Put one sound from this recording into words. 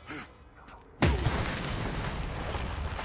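A fire roars loudly after a sudden explosion.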